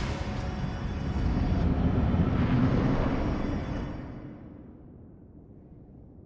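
A deep magical blast roars and rumbles, then slowly fades away.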